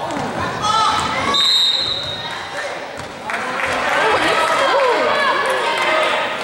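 Sneakers squeak on a hard gym floor.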